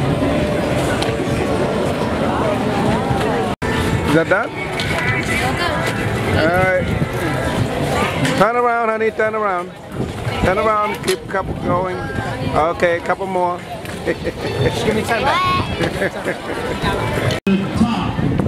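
A crowd chatters outdoors in the background.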